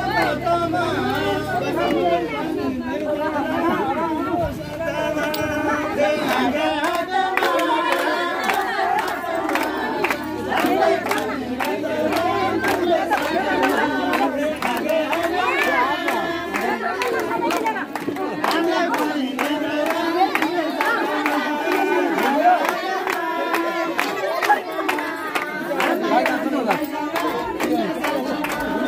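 People clap their hands in a steady rhythm.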